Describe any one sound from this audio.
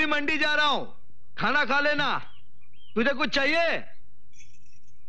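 A man sings with feeling.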